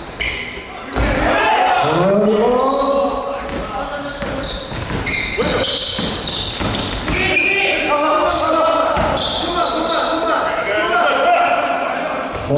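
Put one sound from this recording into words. Young men shout and call out to each other during the game.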